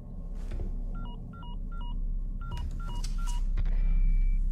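A phone beeps several times.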